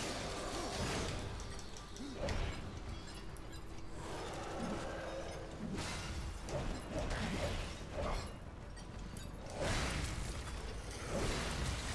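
Heavy blows and crashes sound as a huge creature fights a warrior.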